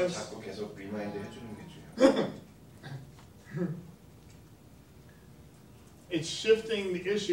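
A middle-aged man lectures with animation, pausing now and then.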